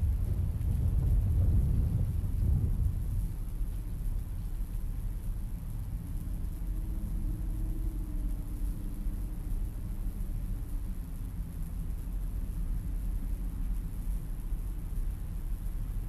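Wind blows outdoors with a low, steady rumble, gusting louder at first.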